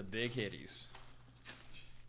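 Plastic wrapping crinkles as hands tear at it.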